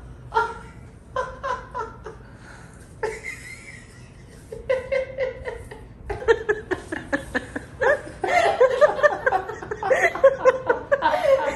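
A young man laughs loudly and exclaims into a headset microphone.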